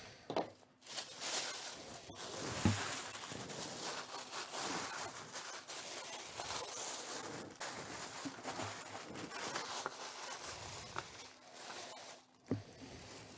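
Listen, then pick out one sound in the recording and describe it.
Tissue paper crinkles and rustles.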